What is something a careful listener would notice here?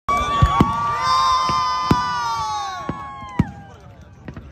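A crowd of men and women cheers and whoops.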